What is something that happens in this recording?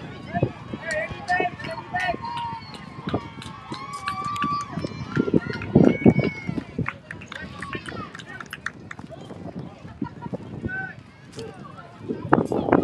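Young girls cheer and call out from a distance outdoors.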